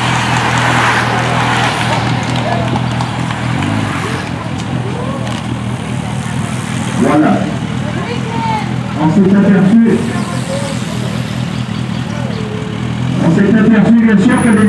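Racing bicycles whir past on the road.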